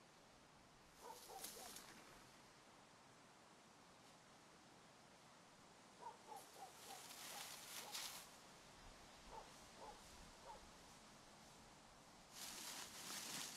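Leaves and branches rustle loudly close by in short bursts.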